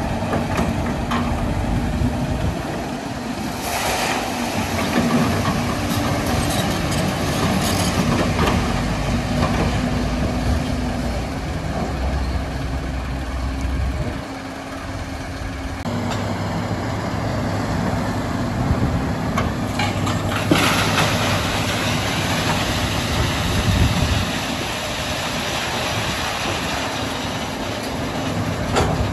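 Rocks and gravel clatter into a truck bed.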